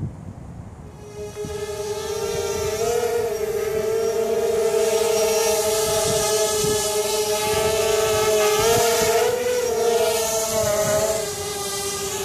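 A spinning object whirls overhead with a steady, wavering hum.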